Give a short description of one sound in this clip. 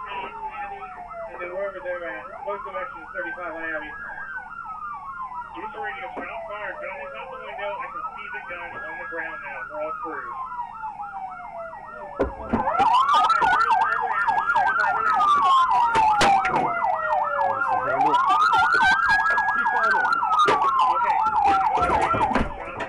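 A police siren wails, rising and falling in slow repeated sweeps.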